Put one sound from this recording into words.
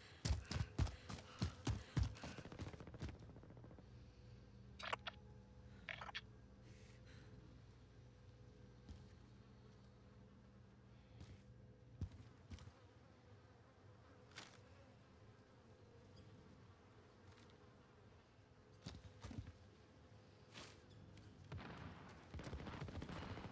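Footsteps tread on the ground nearby.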